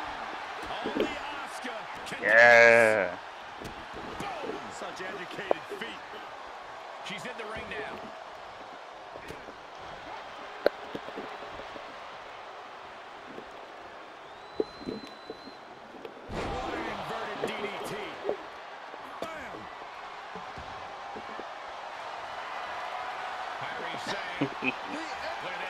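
Bodies thud onto a wrestling mat.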